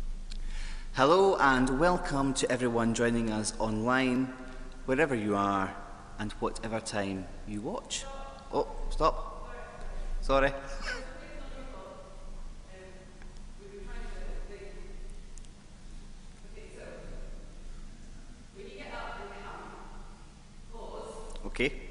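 A man speaks with animation into a microphone in an echoing hall.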